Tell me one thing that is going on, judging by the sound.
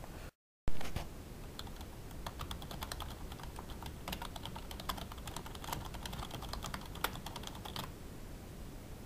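Keys on a keyboard click rapidly as someone types.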